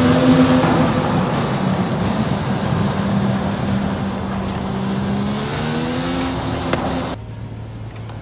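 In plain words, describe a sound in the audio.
A sports car engine roars at high speed, shifting gears.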